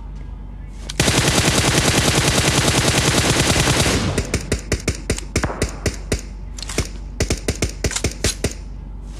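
A rifle fires in a rapid burst of gunshots.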